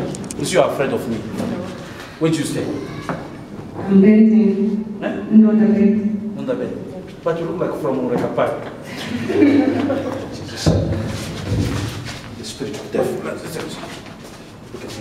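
A man speaks loudly and with fervour into a microphone.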